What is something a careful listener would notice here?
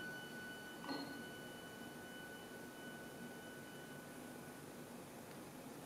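A small string and wind ensemble's final note rings softly and fades away.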